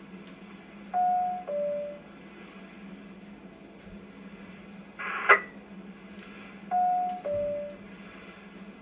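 A radio sounds a short two-tone beep.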